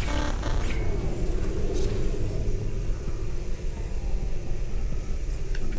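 Electricity crackles and fizzes in short bursts.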